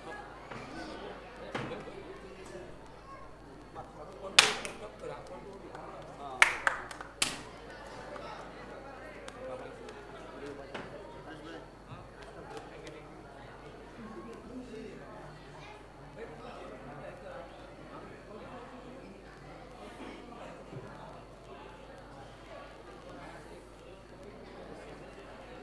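An audience murmurs quietly in a hall.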